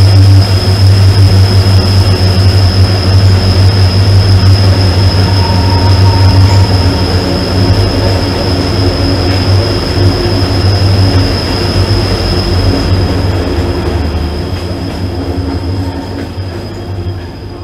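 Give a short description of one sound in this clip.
A train rumbles heavily along the tracks, echoing in a tunnel, then fades.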